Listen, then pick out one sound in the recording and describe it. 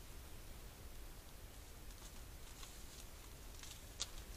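A deer steps softly through dry leaves.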